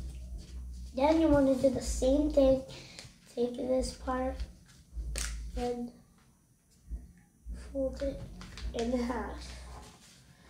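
A young boy talks calmly close by.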